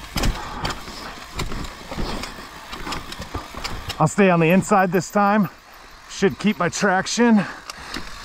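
Bicycle tyres crunch and rumble over a rough dirt and rock trail.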